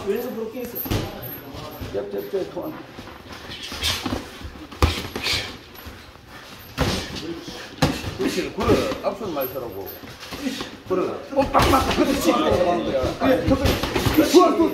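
Gloved punches thud against headgear and gloves.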